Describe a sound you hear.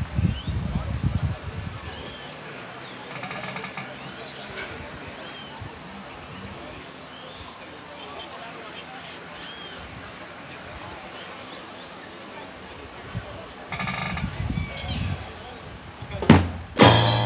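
Wind gusts outdoors against the microphone.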